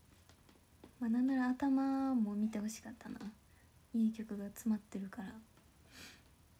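A young woman speaks softly and close up.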